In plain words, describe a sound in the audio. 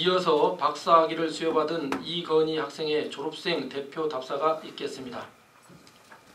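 A middle-aged man speaks formally into a microphone over loudspeakers in a large room.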